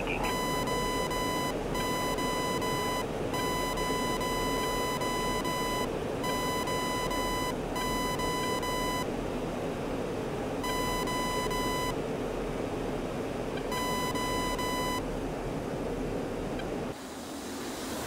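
A jet engine hums steadily from inside a cockpit.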